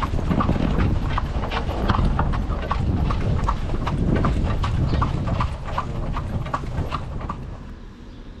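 Horse hooves clop steadily on paving.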